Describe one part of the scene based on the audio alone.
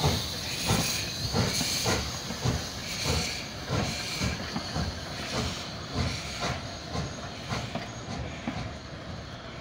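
A steam locomotive chuffs rhythmically as it passes close by.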